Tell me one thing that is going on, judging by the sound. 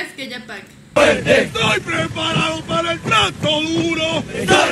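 Ducks quack loudly in a crowd.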